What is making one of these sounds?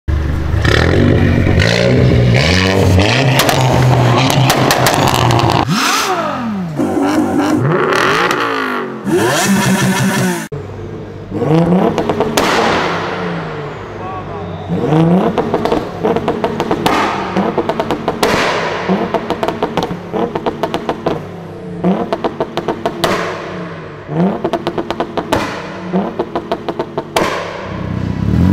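A car exhaust crackles and pops with sharp bangs.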